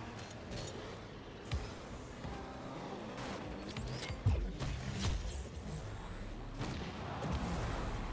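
A ball is struck with heavy thuds.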